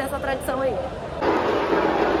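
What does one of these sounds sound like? A young woman speaks cheerfully, close to the microphone.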